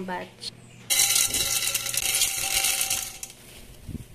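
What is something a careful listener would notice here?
Popcorn kernels pour and rattle into a metal pot.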